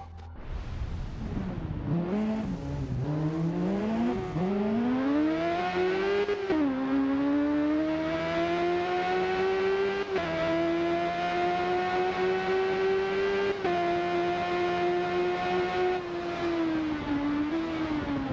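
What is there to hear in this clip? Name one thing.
A motorcycle engine revs up and shifts through the gears, rising and dropping in pitch.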